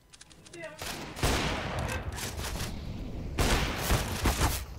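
Gunshots ring out nearby.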